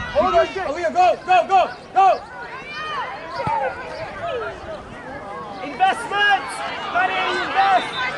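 A man on the sideline shouts instructions nearby.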